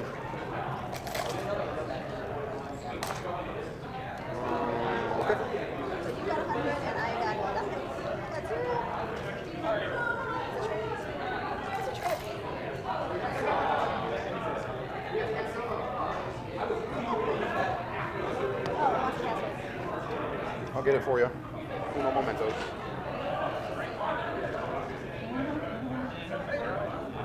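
Several men talk with each other close by.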